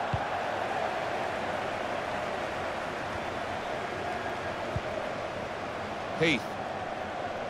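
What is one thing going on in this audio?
A stadium crowd murmurs and cheers steadily throughout.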